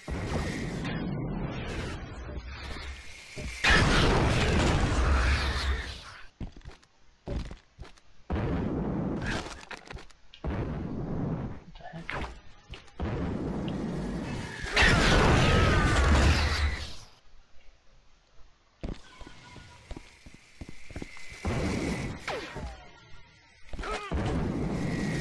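A jetpack roars with bursts of thrust.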